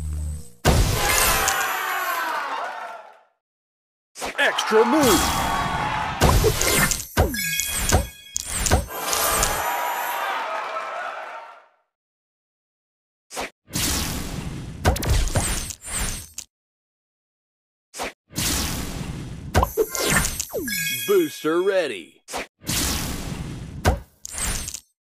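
A puzzle video game plays bursting and chiming sound effects.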